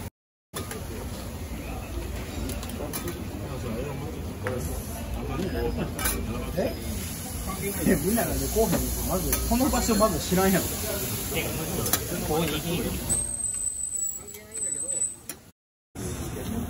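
Meat sizzles on a hot griddle.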